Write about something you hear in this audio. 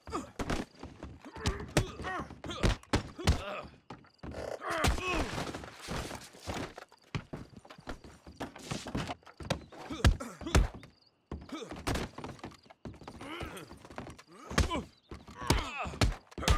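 Fists land on bodies with heavy thuds.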